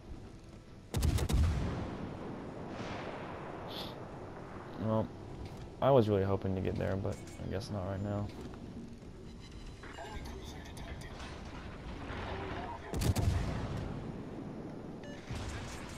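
Heavy naval guns fire in loud booming salvos that rumble away.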